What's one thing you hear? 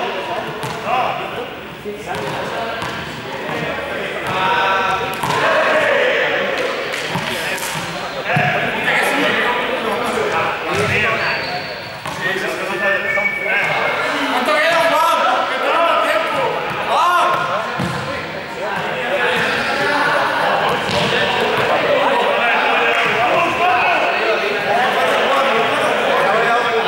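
Young men talk and call out in a large echoing hall.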